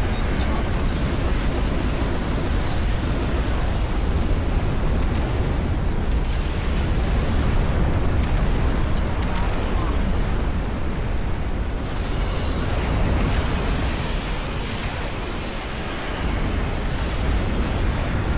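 Gunfire and explosions rumble in a distant battle.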